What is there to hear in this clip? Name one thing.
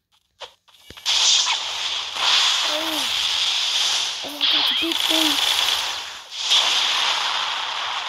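Fiery blasts roar and burst in loud rushes.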